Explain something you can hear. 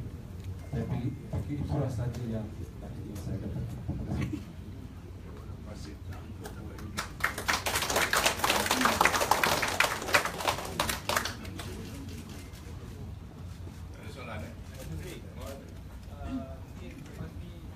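An elderly man speaks calmly into a microphone in a large room.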